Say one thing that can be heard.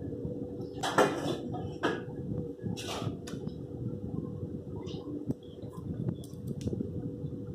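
Small plastic parts click and rattle as hands fit them into a motorcycle's handlebar.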